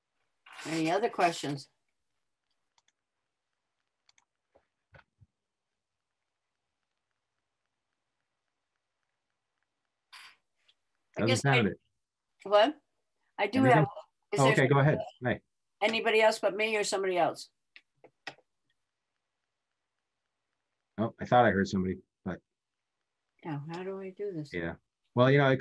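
A middle-aged man speaks calmly over an online call, with long pauses.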